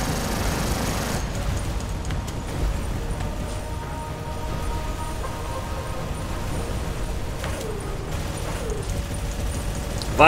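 Heavy robot footsteps thud and clank steadily.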